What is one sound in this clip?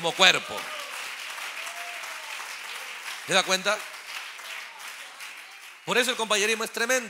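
A large crowd claps hands steadily.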